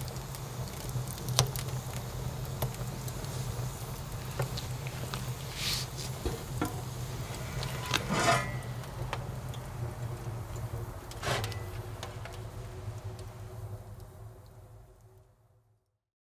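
Flames roar softly and steadily.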